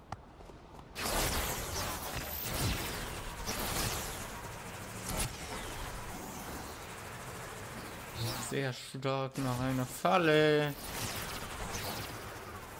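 A crackling rush of energy whooshes and roars loudly.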